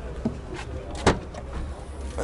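A car's tailgate latch clicks open.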